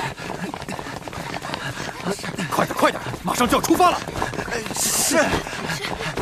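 Footsteps patter quickly on a wooden floor.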